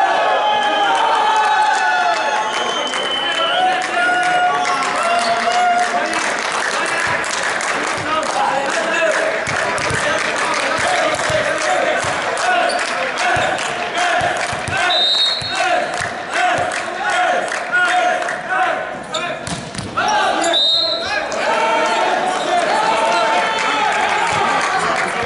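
Men call out to one another across a large echoing hall.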